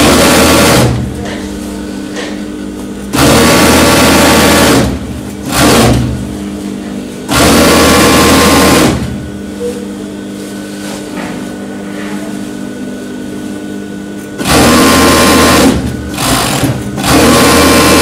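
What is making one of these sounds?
A sewing machine hums steadily at idle between bursts.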